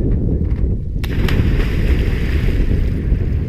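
A man jumps into the water with a loud splash.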